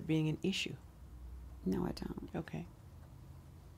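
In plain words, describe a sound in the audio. A middle-aged woman speaks calmly and close up, with short pauses.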